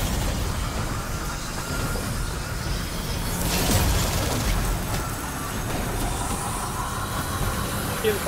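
Crystals shatter with a sharp, glassy crash.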